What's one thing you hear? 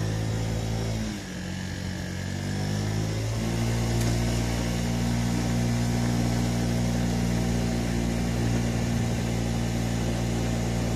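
A scooter engine hums close by, dropping in pitch and then rising again.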